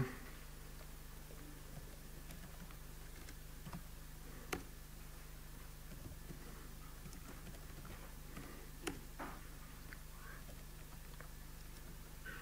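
Laptop keys click softly in quick, uneven taps.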